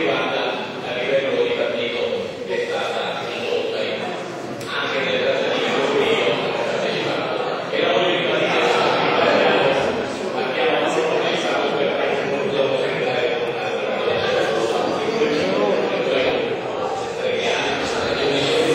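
An elderly man speaks with animation in a large echoing hall.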